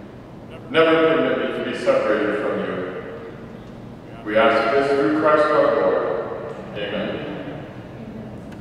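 A man reads aloud through a microphone in an echoing hall.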